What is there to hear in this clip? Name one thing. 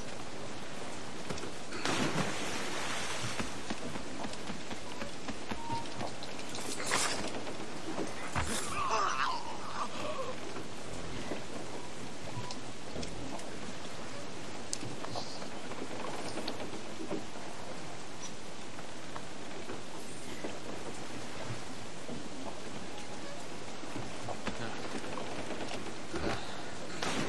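Steady wind blows over open water.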